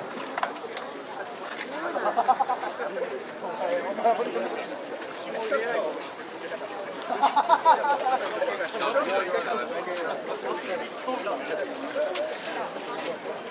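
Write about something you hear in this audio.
A man chants a prayer in a steady, drawn-out voice outdoors.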